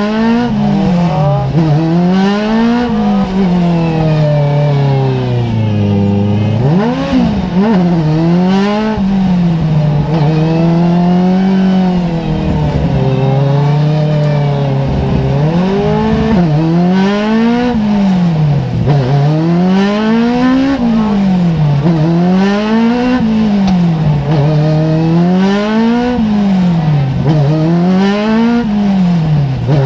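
A race car engine revs hard up and down through the gears, heard from inside the cockpit.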